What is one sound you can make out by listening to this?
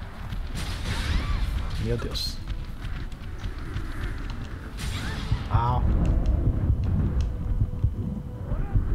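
A giant creature roars and screeches.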